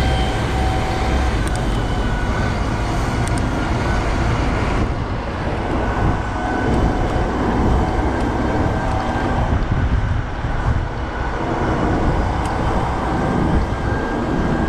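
Wind rushes loudly past while riding a bicycle.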